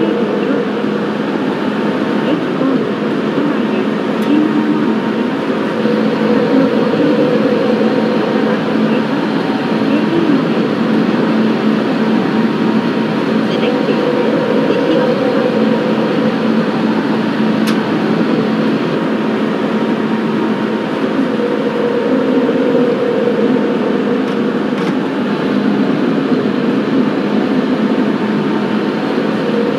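A train rumbles steadily along rails through an echoing tunnel.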